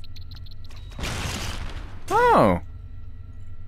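A robotic arm whirs as it moves.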